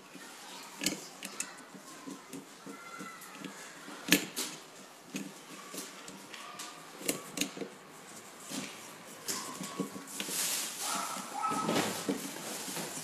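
Metal parts click and scrape against each other.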